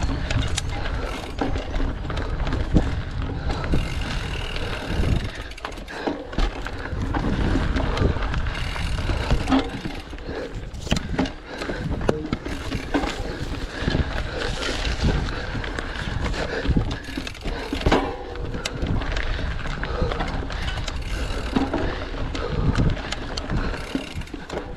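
Wind rumbles against a microphone while riding.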